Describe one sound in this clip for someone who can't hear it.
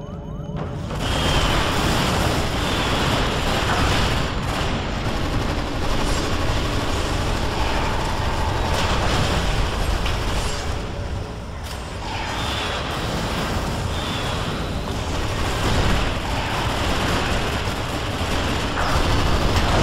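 Energy weapons zap and crackle in a noisy fight.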